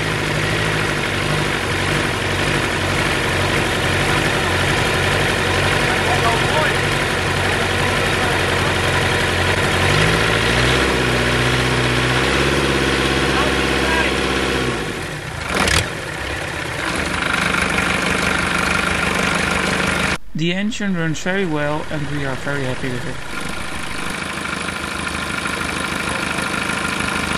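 A boat engine runs with a steady rumble.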